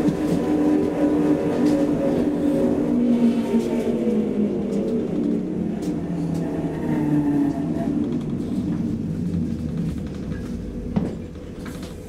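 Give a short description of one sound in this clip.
A tram's motor hums and whines as it rolls along, then slows.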